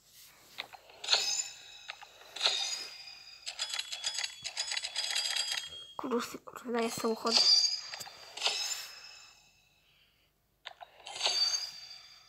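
Bright electronic chimes and jingles ring out in quick bursts.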